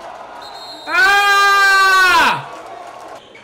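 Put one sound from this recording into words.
A young man shouts loudly in excitement.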